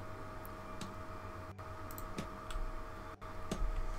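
A wooden structure thuds into place.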